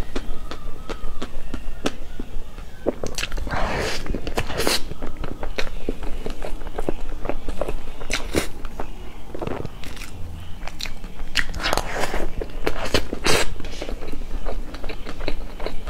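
A metal spoon scrapes and taps against a cake board.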